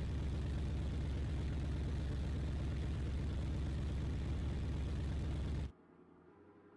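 A sports car engine idles with a deep rumble.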